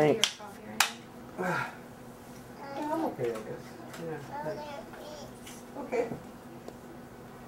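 A man speaks softly to a child nearby.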